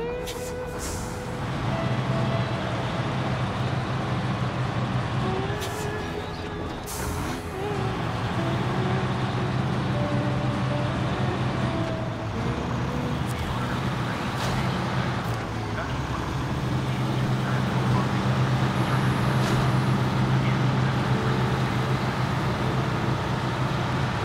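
A heavy diesel truck engine drones under load.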